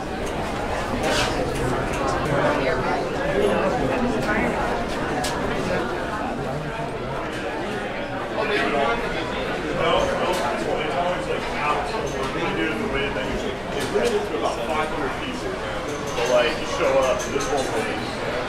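A crowd of people chatters all around in a busy, echoing indoor hall.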